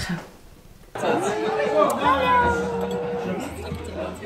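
Women laugh in a busy room.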